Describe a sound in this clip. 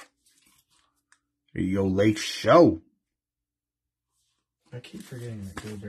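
A trading card slides into a thin plastic sleeve with a soft rustle.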